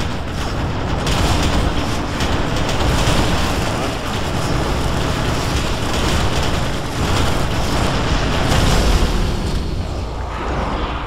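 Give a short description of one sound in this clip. Energy blasts crackle and roar in a loud battle.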